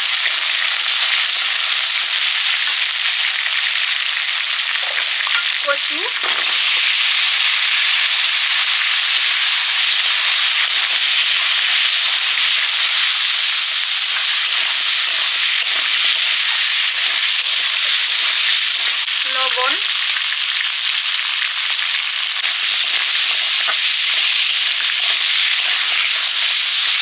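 Hot oil sizzles steadily in a pan.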